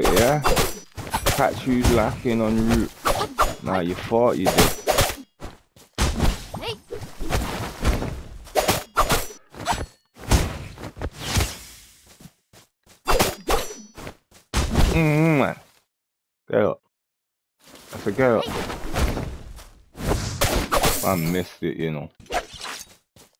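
A sword swishes and strikes a creature with sharp hits.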